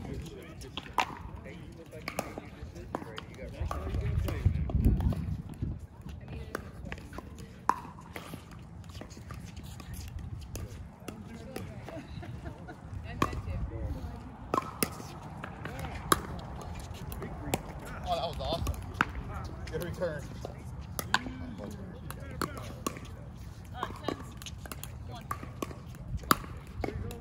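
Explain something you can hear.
Paddles hit a plastic ball with sharp hollow pops, back and forth.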